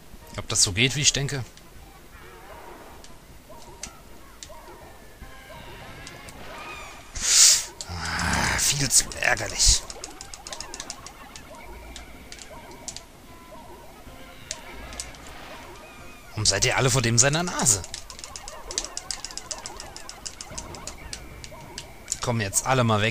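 Game sound effects chirp and pop as small creatures attack a large monster.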